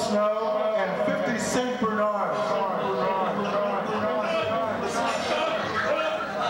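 A man speaks with animation into a microphone, heard over loudspeakers in an echoing room.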